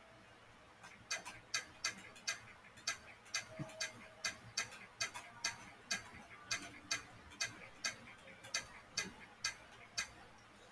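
Soft mechanical clicks tick one after another at a quick, even pace.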